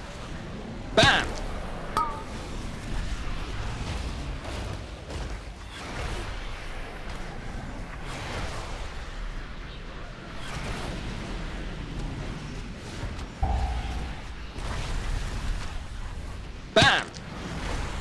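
Sharp magical blasts ring out now and then.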